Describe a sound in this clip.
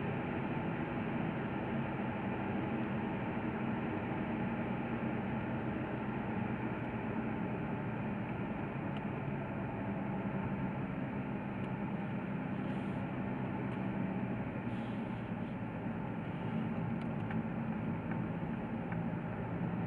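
Tyres roll and rumble on the road surface.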